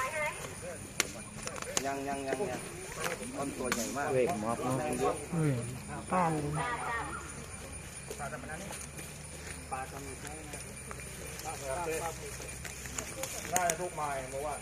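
Several men talk and call out nearby, outdoors.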